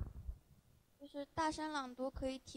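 A young girl speaks through a microphone.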